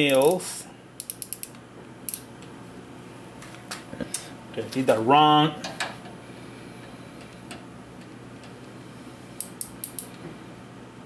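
A micrometer's ratchet clicks in quick bursts.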